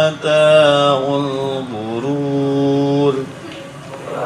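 A young man chants in a long, drawn-out tune through a microphone.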